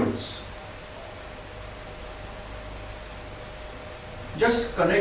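A man speaks calmly, close to a microphone.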